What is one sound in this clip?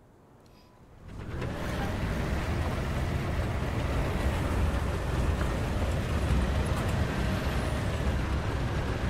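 Tank tracks clank and grind over sand.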